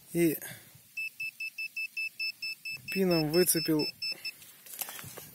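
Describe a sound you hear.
A metal detector beeps in quick, even pulses.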